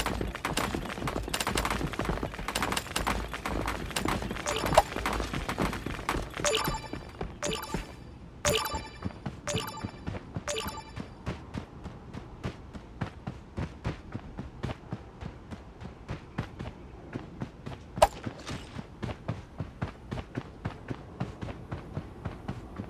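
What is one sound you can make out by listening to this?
Footsteps patter quickly over ground.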